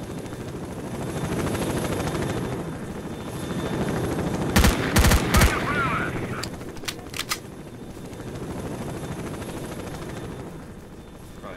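A helicopter's rotor thuds overhead, growing louder and then fading.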